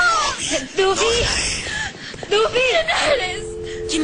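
A young woman talks anxiously on a phone.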